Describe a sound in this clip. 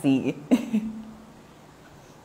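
A young woman laughs loudly close to the microphone.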